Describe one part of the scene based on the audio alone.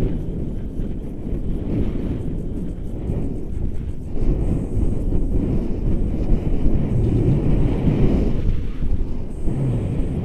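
Strong wind buffets a microphone outdoors.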